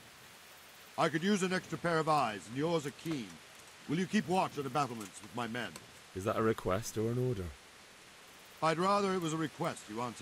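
An elderly man speaks calmly and firmly.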